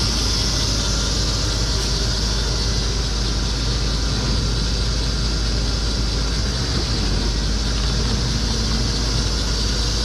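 A diesel armored military truck idles close by.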